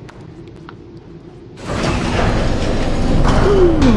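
Heavy elevator doors slide shut with a clang.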